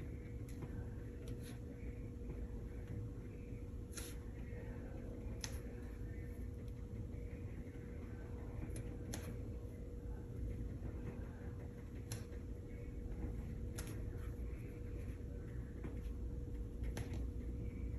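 A brush dabs and taps softly on paper.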